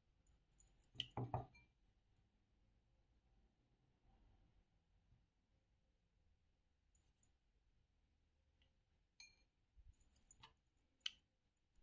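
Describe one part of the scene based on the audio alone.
A spoon clinks and scrapes against a glass bowl.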